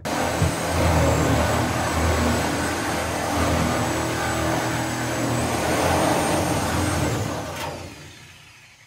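A power saw cuts loudly through metal.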